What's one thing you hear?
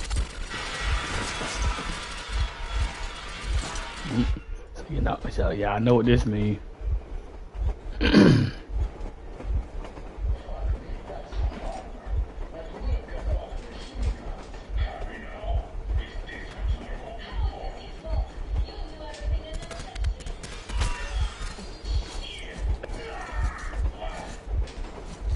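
A man talks into a headset microphone.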